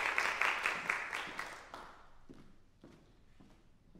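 Footsteps tap across a wooden stage.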